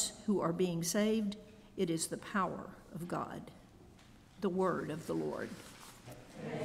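An elderly woman reads aloud calmly through a microphone in an echoing room.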